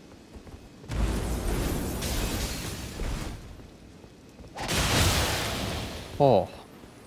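Frost magic bursts with an icy crackling whoosh.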